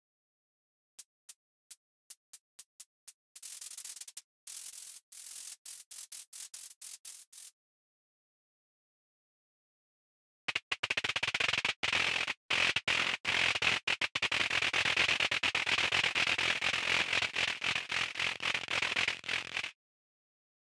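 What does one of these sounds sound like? An electronic synthesizer gives out crackling, hissing noise bursts.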